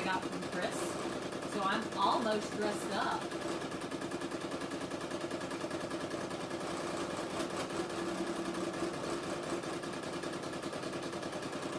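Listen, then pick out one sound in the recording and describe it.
An embroidery machine stitches with a fast, steady rattling hum.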